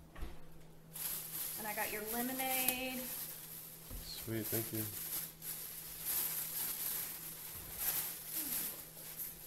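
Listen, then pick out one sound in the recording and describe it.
A plastic bag rustles as it is handled.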